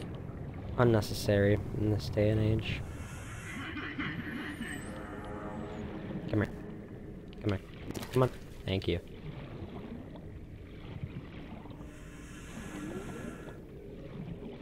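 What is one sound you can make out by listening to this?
Muffled underwater ambience rumbles low and steady.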